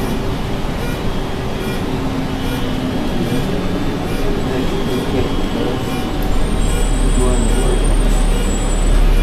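A bus rattles and creaks as it rolls along.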